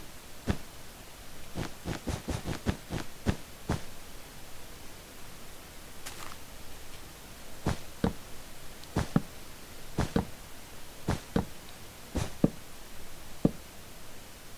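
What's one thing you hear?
Blocks are placed with short, soft thuds in a quick series.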